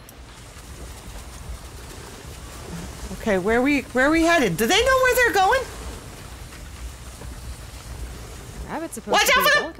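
Sled runners hiss over snow.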